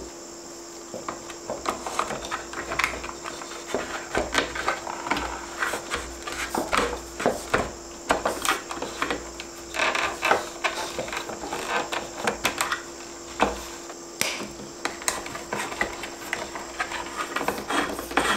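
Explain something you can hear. A plastic box clicks and knocks under handling.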